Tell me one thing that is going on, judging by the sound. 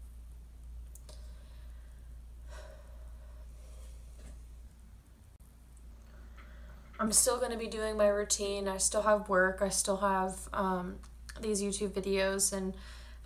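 A young woman talks to the microphone up close, calmly at first and then with more animation.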